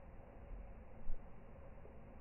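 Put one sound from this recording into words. A small bird dips into the water with a brief splash.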